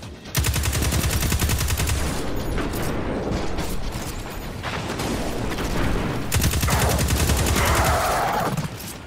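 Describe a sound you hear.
An automatic rifle fires rapid bursts.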